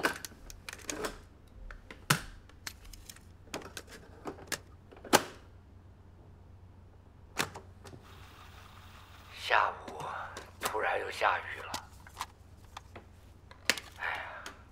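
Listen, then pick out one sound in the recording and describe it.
Plastic cassette cases clack and clatter.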